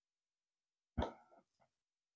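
A plastic cup taps once on a wooden floor.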